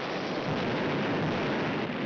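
Naval guns fire loud blasts.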